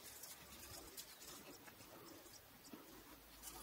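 Hands rustle through leafy plants and soil.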